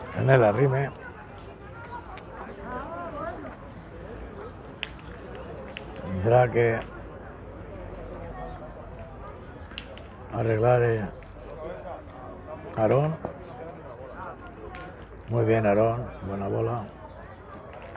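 Men talk and call out loudly nearby outdoors.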